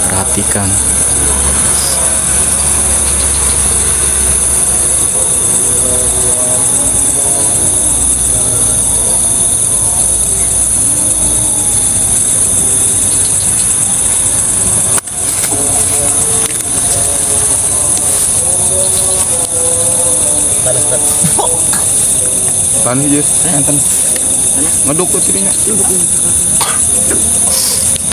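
Young men talk quietly nearby, outdoors at night.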